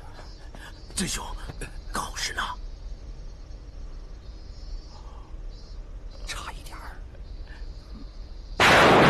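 A middle-aged man speaks, close by.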